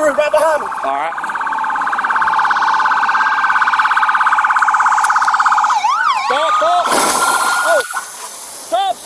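A police siren wails and sweeps in pitch.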